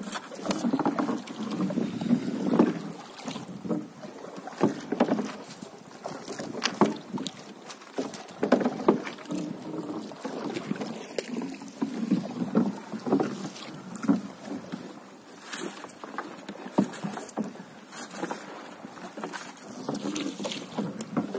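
A wooden paddle splashes and dips in water.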